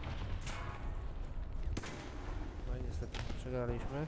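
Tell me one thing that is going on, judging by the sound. A loud explosion bursts close by.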